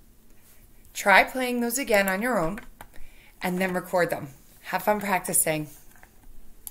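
A woman speaks cheerfully and calmly close to a microphone.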